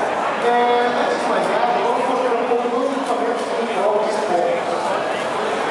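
A young man speaks with animation through a microphone and loudspeaker in a large echoing hall.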